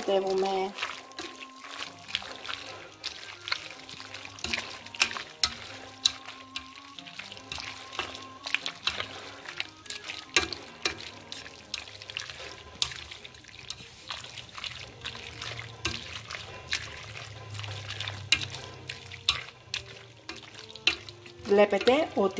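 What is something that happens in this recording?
A wooden spoon stirs and scrapes food in a metal pot.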